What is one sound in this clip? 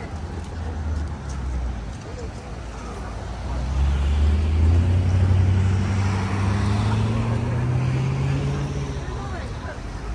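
A car pulls away and drives past.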